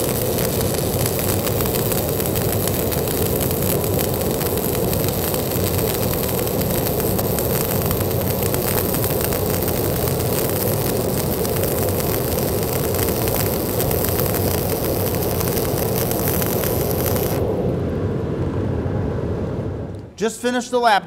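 A welding arc crackles and hisses steadily.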